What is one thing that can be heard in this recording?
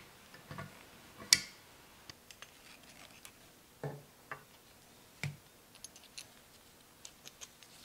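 A metal tool clicks against metal parts.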